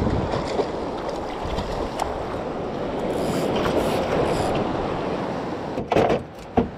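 Shallow water sloshes and laps close by.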